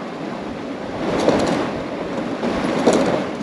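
A heavy motorcycle scrapes and shifts against stones.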